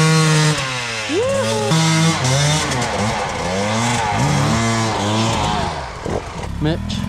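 A dirt bike engine revs hard, rising and falling.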